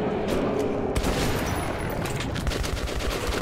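A shotgun is reloaded with metallic clicks.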